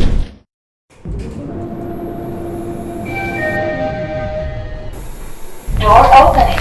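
An elevator hums as it rises.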